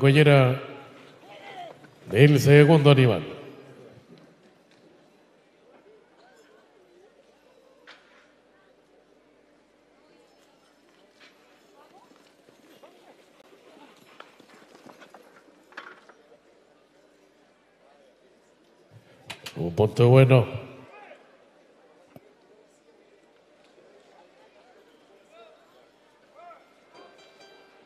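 Horses gallop on soft dirt.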